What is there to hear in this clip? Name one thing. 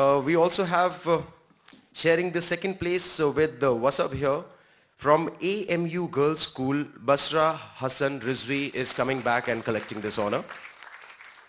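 A man announces through a microphone and loudspeakers in a large echoing hall.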